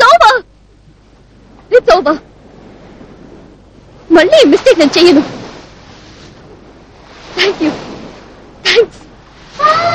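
A young woman speaks in short, upset bursts close by.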